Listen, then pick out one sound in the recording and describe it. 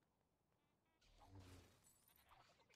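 A lightsaber ignites with a crackling hum.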